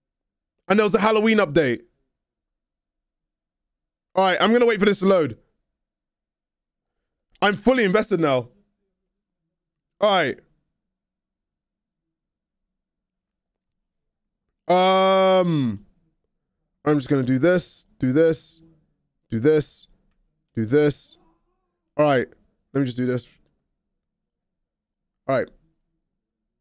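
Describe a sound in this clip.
A young man talks into a microphone in short, lively bursts.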